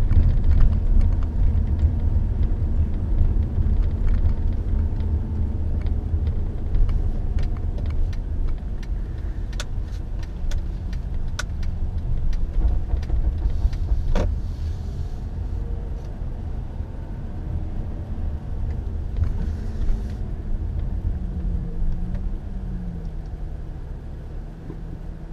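A car engine rumbles steadily from inside the car as it drives.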